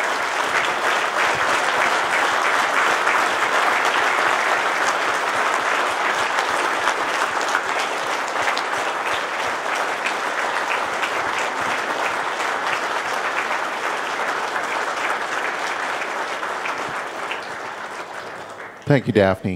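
A large crowd applauds and cheers in an echoing hall, then fades.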